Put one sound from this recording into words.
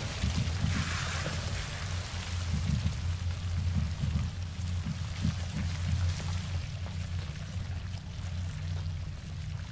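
Footsteps tread slowly on a wooden floor.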